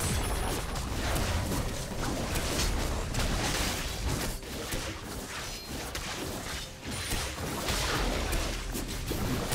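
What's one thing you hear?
Spell effects crackle, whoosh and boom in a video game battle.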